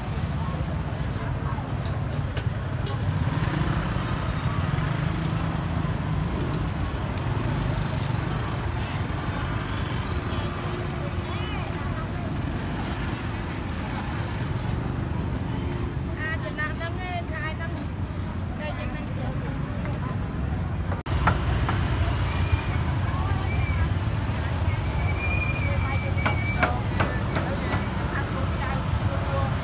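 A motorbike engine idles and putters close by.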